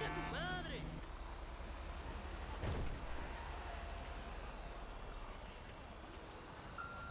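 A fire engine drives off along a road.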